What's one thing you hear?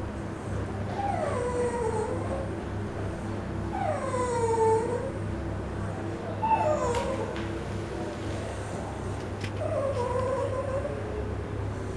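A dog whines in long, drawn-out cries, now and then.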